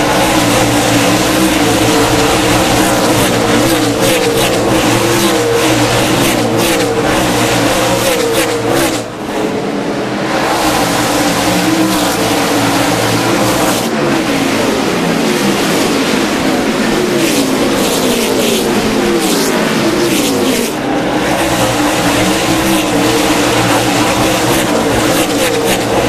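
Race car engines roar loudly as cars speed past close by, their pitch rising and falling.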